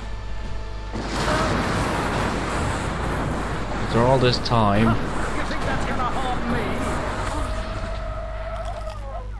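Magic lightning crackles and hisses.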